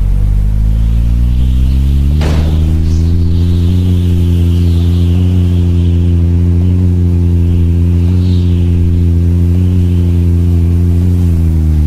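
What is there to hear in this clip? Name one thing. A truck engine hums steadily, rising in pitch as it speeds up at the start.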